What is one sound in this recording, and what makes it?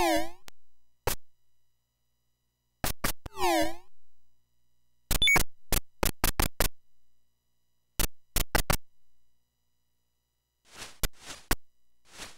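Electronic video game sound effects beep and blip in short bursts.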